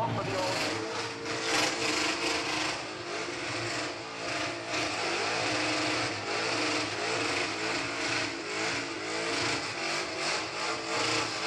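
A car engine roars and revs hard, bouncing near its limit.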